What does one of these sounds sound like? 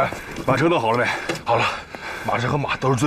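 An elderly man asks a question in a hoarse voice outdoors.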